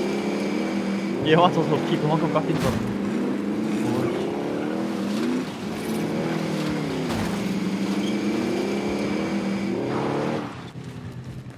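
A quad bike engine revs and hums, rising and falling in pitch.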